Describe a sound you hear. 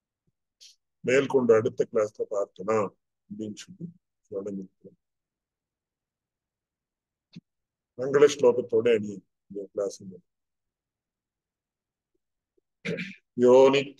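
An elderly man speaks calmly over an online call, with pauses.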